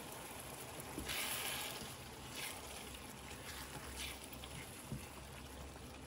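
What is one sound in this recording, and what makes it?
A silicone spatula stirs and scrapes vegetables in a frying pan.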